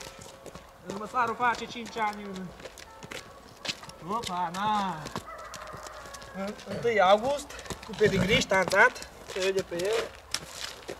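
A man talks calmly to a horse nearby.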